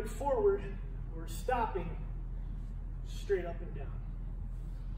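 A man speaks calmly in a large, slightly echoing room.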